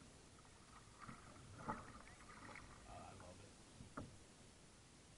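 Water laps softly against a kayak's hull.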